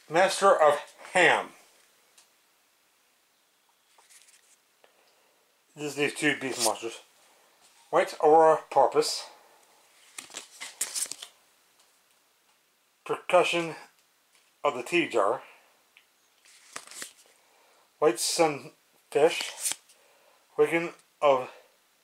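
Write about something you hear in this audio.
Playing cards slide and shuffle against each other in a hand.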